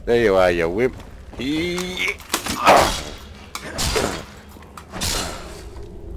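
Sword blows land with heavy, wet thuds.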